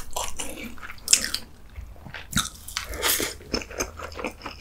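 A man slurps noodles loudly close to a microphone.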